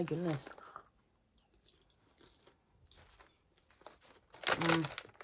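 A young woman crunches on popcorn.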